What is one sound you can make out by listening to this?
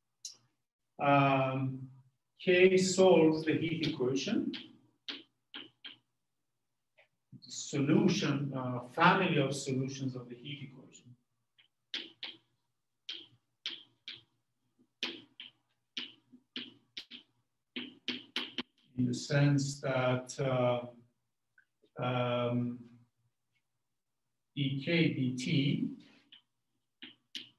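A man speaks calmly in a lecture, pausing often.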